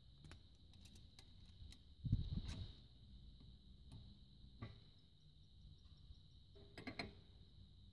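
A hydraulic hose coupler clicks as it is connected.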